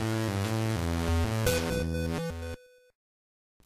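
Bright chiptune music plays, then cuts off.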